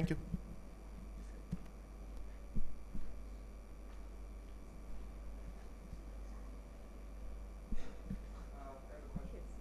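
A young woman speaks briefly through a microphone in a large room.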